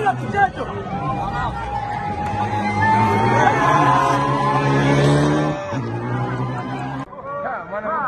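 A crowd cheers and shouts with excitement.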